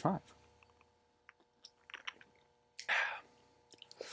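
A man sips a drink and swallows.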